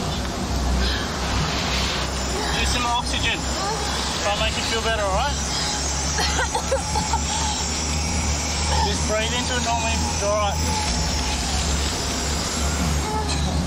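A resuscitation bag is squeezed with a soft rubbery hiss.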